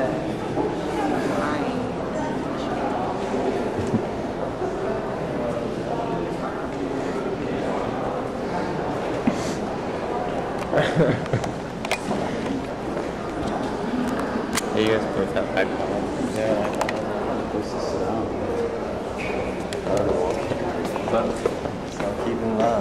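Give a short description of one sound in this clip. A crowd of people murmurs and chatters in a large echoing hall.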